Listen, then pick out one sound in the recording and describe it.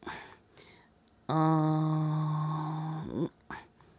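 A metal ladle clinks against a glass bowl.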